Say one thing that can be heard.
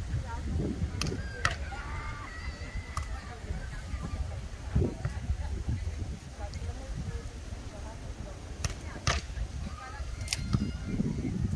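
A volleyball is struck with sharp slaps now and then.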